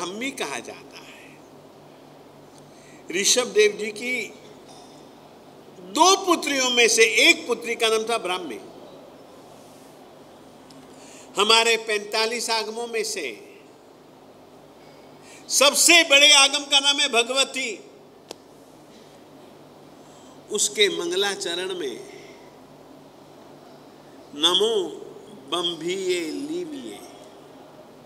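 An elderly man speaks with animation into a microphone, in bursts with pauses between them.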